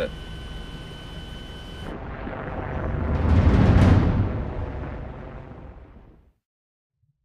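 A deep explosion rumbles and slowly fades.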